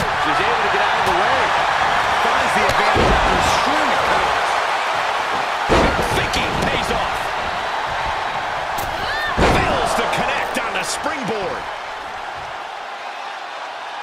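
A large crowd cheers and roars steadily.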